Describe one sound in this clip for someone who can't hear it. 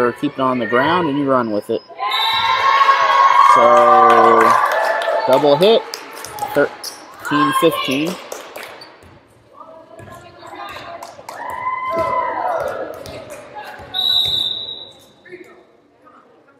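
Young women shout and cheer loudly in an echoing gym.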